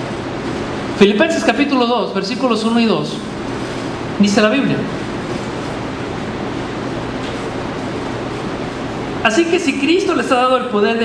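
A man speaks through a microphone in an echoing hall, pausing often.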